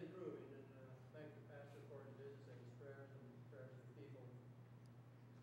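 An elderly man speaks calmly, a little distant, in a large echoing room.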